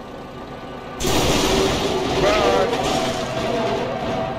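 A locomotive smashes into wrecked vehicles with a crash of metal.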